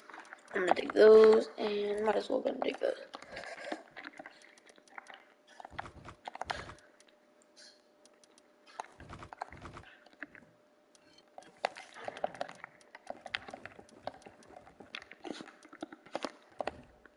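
Soft interface clicks tick as menu items are selected.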